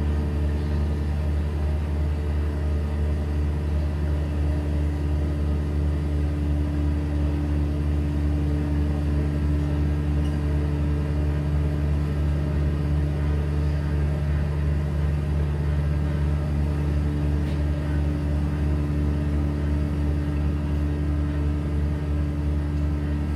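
A guitar plays through an amplifier.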